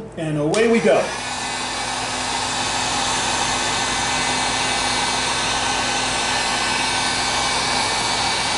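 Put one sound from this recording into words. A heat gun blows with a steady, loud whoosh.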